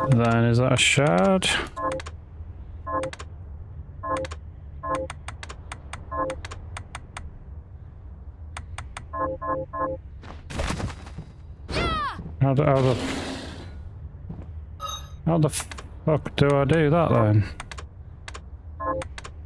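Short electronic blips sound as a game menu selection moves.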